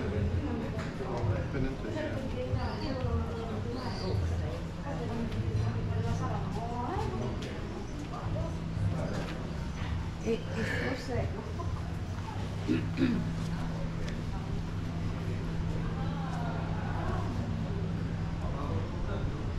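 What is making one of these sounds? Men and women chatter nearby in a busy outdoor street.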